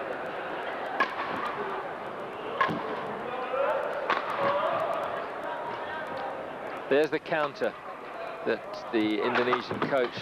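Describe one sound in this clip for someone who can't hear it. A racket smacks a shuttlecock back and forth in a large echoing hall.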